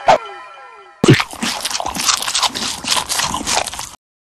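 A cartoon creature munches and chomps noisily on food.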